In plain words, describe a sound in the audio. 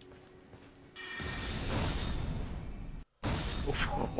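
A magic sword hums and whooshes through the air.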